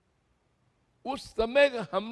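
An elderly man speaks calmly into a microphone.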